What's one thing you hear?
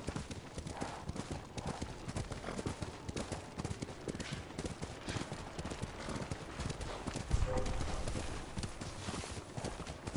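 A horse gallops over snow with rapid, thudding hoofbeats.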